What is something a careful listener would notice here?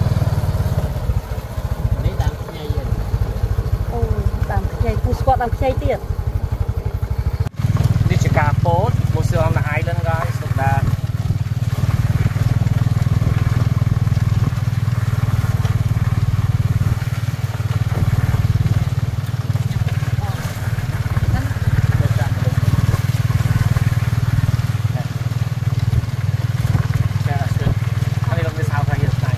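A small motor engine rumbles steadily while riding along.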